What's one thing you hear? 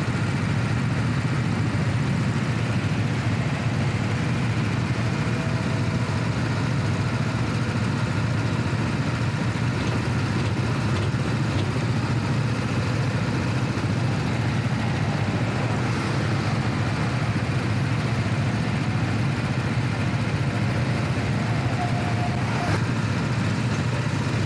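A go-kart engine drones loudly and steadily up close.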